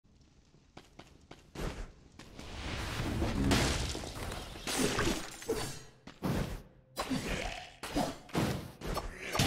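Sword slashes and hits strike in quick bursts.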